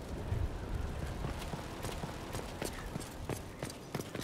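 Quick footsteps run across a stone floor.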